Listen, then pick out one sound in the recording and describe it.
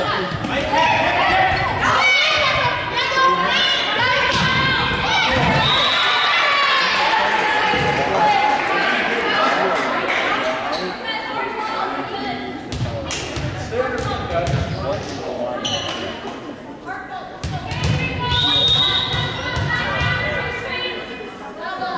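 Sneakers squeak on a gym floor.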